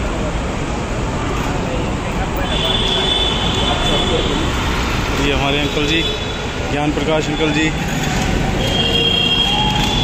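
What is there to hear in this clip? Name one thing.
A motorcycle engine idles.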